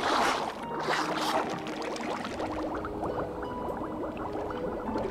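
Bubbles gurgle and pop underwater.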